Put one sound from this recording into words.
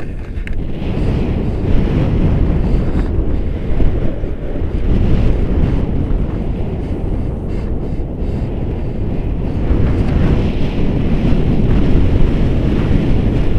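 Wind rushes and buffets loudly against a microphone.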